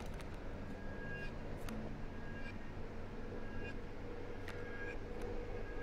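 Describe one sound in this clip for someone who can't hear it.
Playing cards slide and flick softly.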